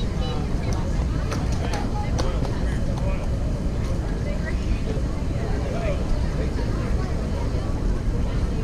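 A crowd of players and spectators chatters and calls out across an open field.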